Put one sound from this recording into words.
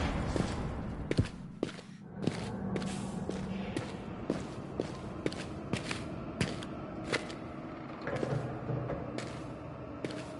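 Footsteps thud on a stone floor at a steady pace.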